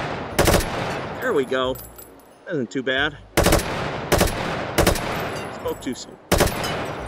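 A gun fires loud blasts, a few seconds apart.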